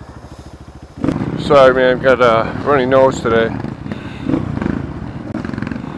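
Other dirt bike engines rev loudly nearby.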